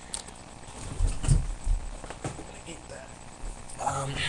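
Clothing rustles and thumps against a microphone.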